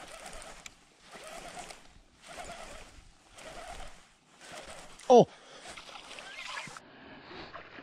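A fishing reel whirs in short bursts as its handle is cranked.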